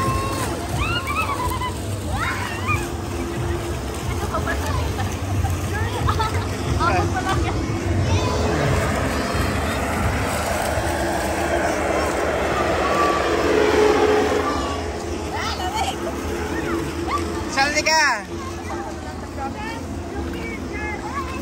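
Children shout and squeal excitedly outdoors.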